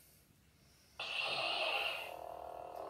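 A toy lightsaber ignites with a whooshing sound.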